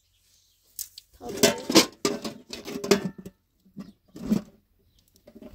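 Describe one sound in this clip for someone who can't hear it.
A metal pot clatters as it is lifted.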